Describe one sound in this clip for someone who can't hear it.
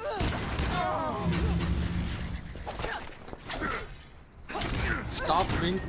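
Weapon blows strike with sharp thuds.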